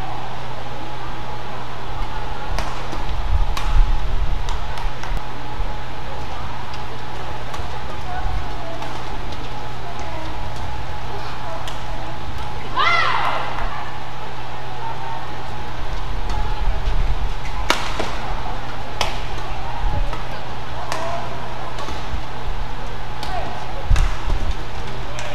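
Shoes squeak on a court floor as players move quickly.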